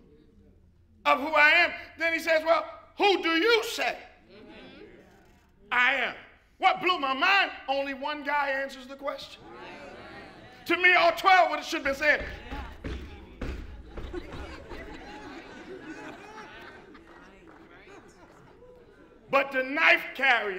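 A man preaches with animation through a microphone in a large echoing hall.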